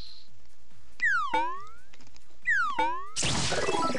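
Quick falling electronic chirps sound from a game.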